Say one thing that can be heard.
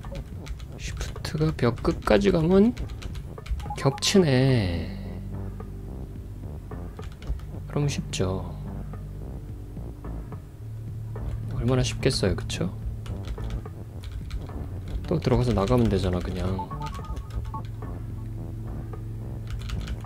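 Soft video game blips sound as a character moves and pushes blocks.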